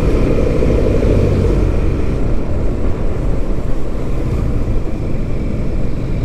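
Wind rumbles against the microphone while riding.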